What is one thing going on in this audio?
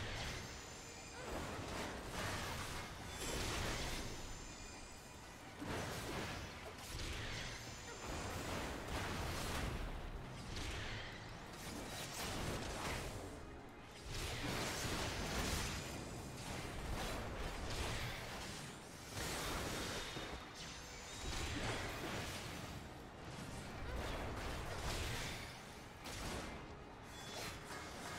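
Magic spells and weapon strikes whoosh and crackle in a battle.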